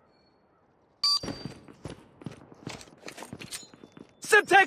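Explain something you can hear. Loud game sound effects burst in and clatter.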